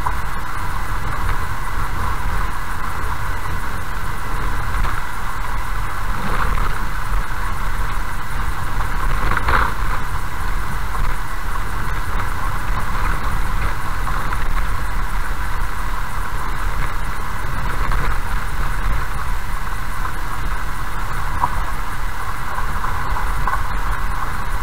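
A car drives steadily over a bumpy gravel road, its engine rumbling low.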